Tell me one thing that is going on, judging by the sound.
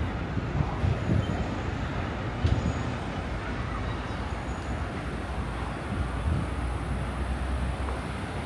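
Traffic hums steadily on a road below.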